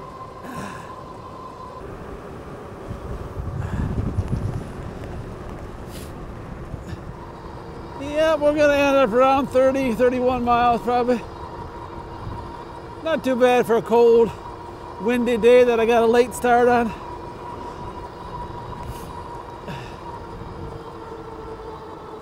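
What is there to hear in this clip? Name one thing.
Bicycle tyres hum steadily on a paved road.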